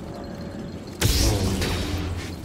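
A lightsaber ignites with a sudden loud hiss.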